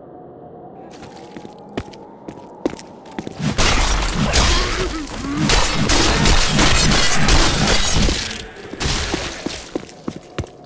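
A gun fires in sharp bursts.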